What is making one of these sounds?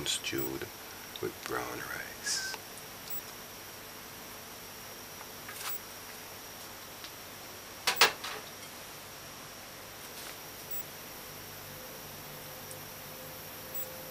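A metal ladle scrapes against a plate.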